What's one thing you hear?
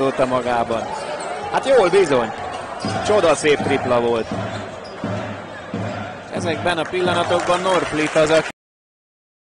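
A crowd murmurs in a large indoor arena.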